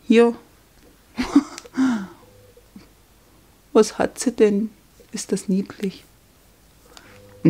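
A plastic sticker sleeve crinkles softly in a hand.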